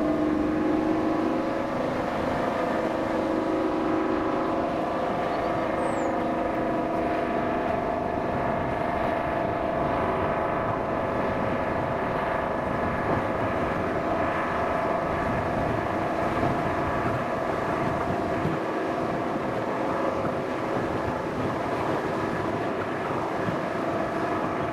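A steam train rumbles and rattles steadily along the track.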